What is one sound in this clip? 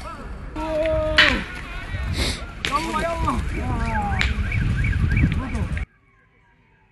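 Several men shout and call out loudly outdoors.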